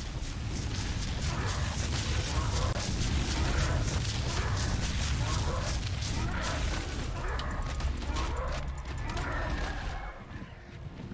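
Wind rushes loudly past during fast flight.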